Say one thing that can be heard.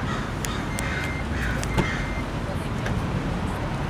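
A car's power tailgate lifts open with a click and a soft whir.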